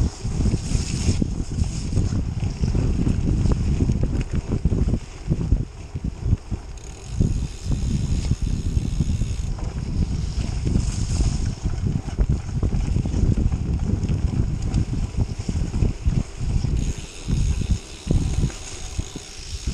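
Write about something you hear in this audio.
Wind rushes and buffets loudly past the rider.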